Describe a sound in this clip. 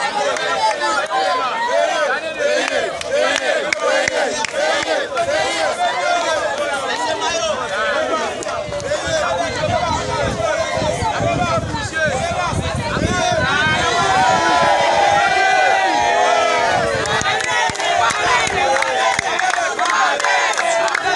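A large crowd shouts and cheers outdoors.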